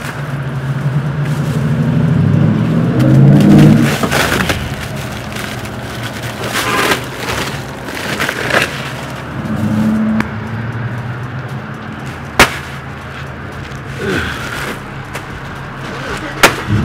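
Plastic bags of ice rustle and crinkle as they are handled.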